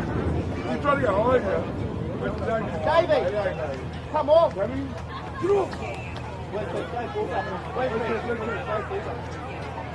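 A crowd of people cheers and shouts across an open field.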